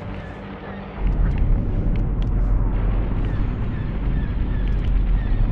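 Flames roar and crackle close by.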